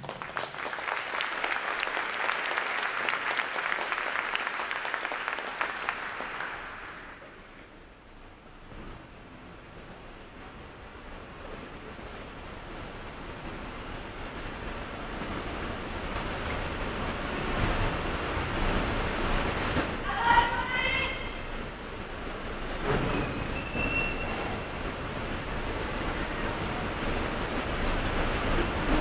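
A brass and drum band plays in a large echoing hall.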